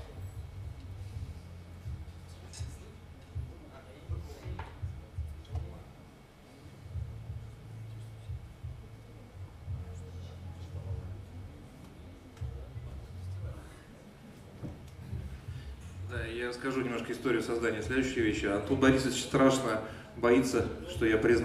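A drum kit taps lightly.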